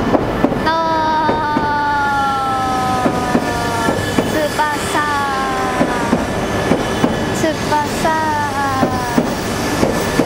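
A train's electric motors whine and slide down in pitch.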